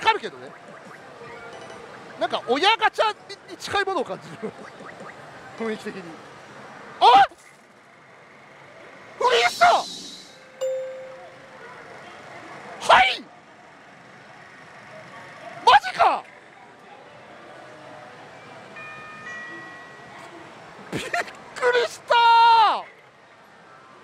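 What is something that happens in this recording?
A young man exclaims loudly in surprise, close by.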